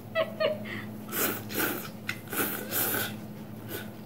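A young woman slurps noodles loudly close to a microphone.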